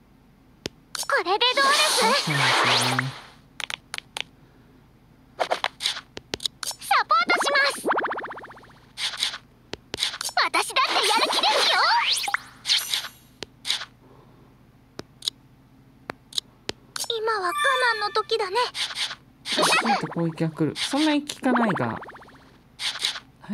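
Electronic game effects of magic attacks whoosh and chime in bursts.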